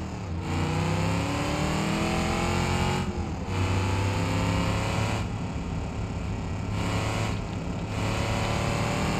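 Tyres hum on a paved road.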